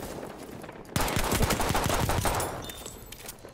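A pistol fires several quick, loud shots close by.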